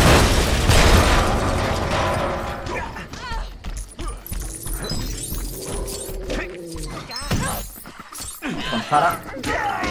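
Small coins jingle and tinkle as they scatter.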